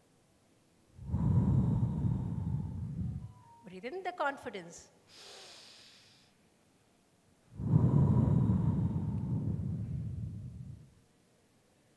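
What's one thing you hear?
A woman breathes out loudly into a microphone.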